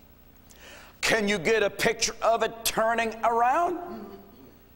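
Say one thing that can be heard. An elderly man speaks loudly and with animation through a microphone in an echoing room.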